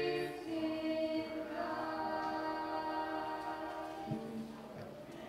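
Young women and a young man sing together through a microphone in a large echoing hall.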